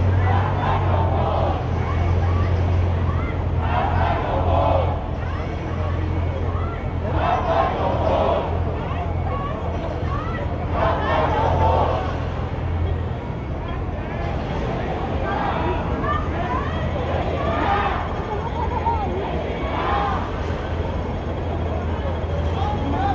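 Men talk loudly close by, with animation.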